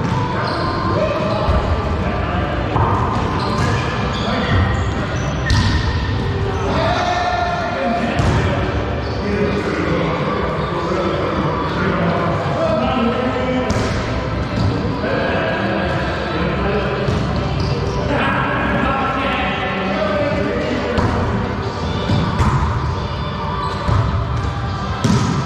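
Men call out to each other in an echoing hall.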